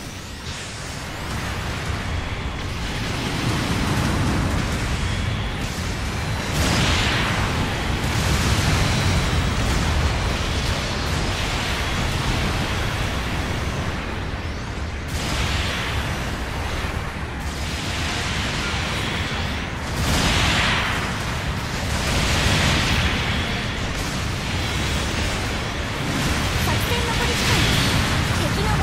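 Robot thrusters roar steadily.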